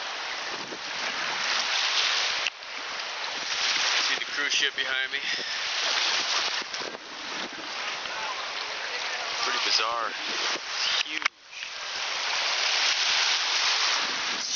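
Wind blows hard into a microphone outdoors.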